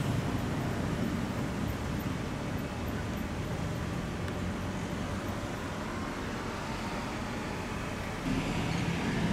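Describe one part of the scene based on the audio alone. A sports car's engine idles with a deep, rumbling burble.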